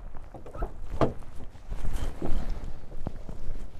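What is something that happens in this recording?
A van's sliding door clicks open and rolls along its track.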